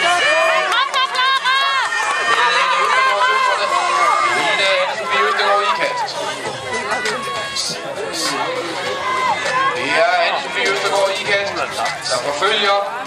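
A crowd of spectators outdoors shouts and cheers loudly.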